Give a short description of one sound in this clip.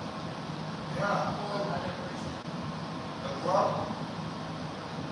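A woman speaks briefly nearby in an echoing room.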